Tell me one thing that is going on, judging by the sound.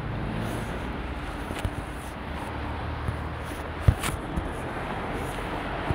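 Traffic rumbles steadily along a city street.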